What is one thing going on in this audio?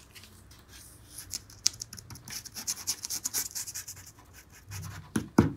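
A gloved hand rubs and squeaks across a smooth plastic surface.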